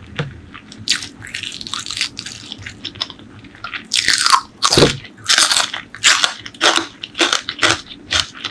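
A person chews crunchy food loudly and close to a microphone.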